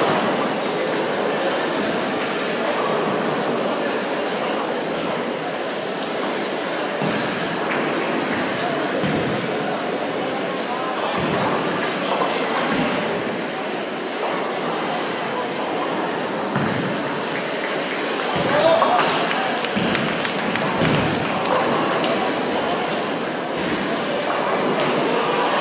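A crowd of people chatters steadily in a large echoing hall.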